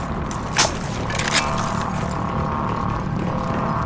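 A rifle clicks and rattles as it is picked up.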